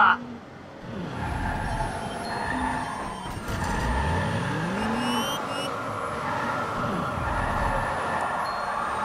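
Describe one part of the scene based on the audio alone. Car tyres screech while skidding around corners.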